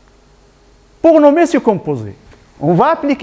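An elderly man speaks loudly and with animation through a microphone.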